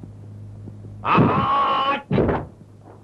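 A young man shouts fiercely and loudly.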